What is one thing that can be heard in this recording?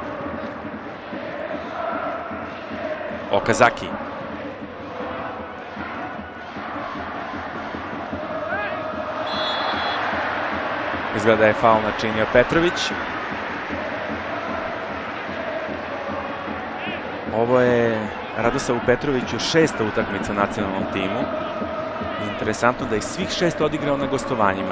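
A large stadium crowd murmurs and roars steadily outdoors.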